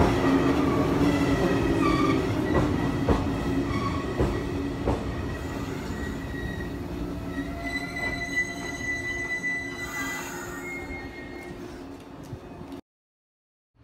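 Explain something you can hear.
A train rumbles slowly along the tracks close by.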